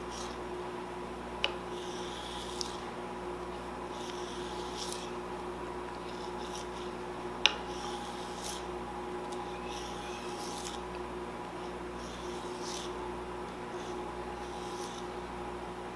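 A knife slices through leaves with soft crisp strokes.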